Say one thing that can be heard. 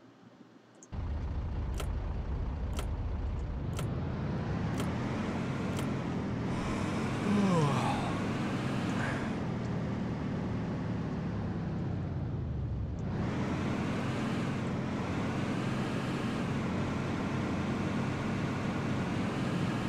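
A truck engine rumbles steadily and revs up and down.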